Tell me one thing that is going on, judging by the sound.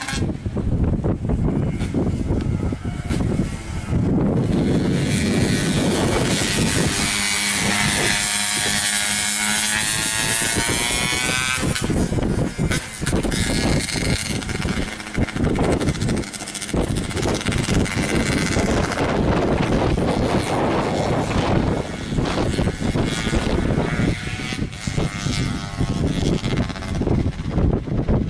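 A motorcycle engine revs loudly as it races past.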